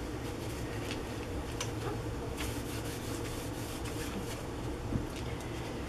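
Paper tags rustle and tap as they are handled.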